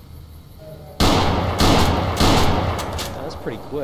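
Gunshots crack loudly in quick succession.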